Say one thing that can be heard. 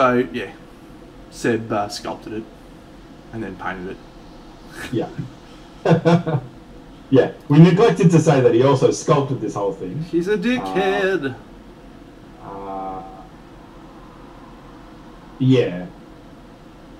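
A man talks with animation into a microphone, in short bursts.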